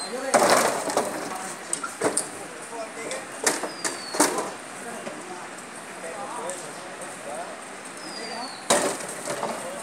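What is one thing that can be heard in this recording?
Wooden poles knock and clatter nearby.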